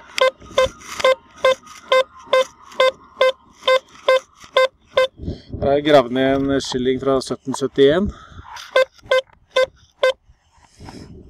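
A metal detector beeps in quick, even pulses.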